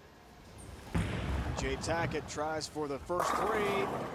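A bowling ball thuds onto the lane and rolls.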